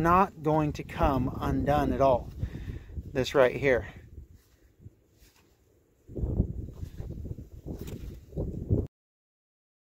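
A fabric strap rustles as it is handled.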